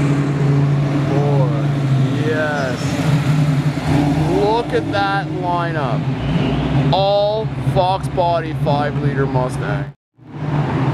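A car engine rumbles as a car drives past.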